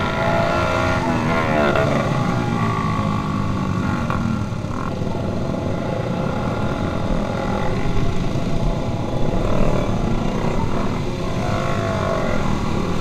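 Motorcycle engines rev up and down nearby.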